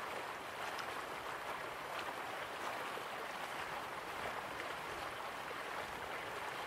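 Water ripples gently against a shore.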